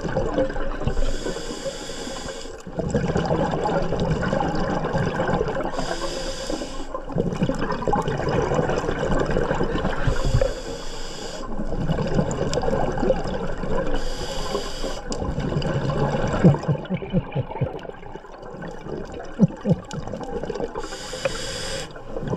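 Air bubbles gurgle and rumble underwater in regular bursts.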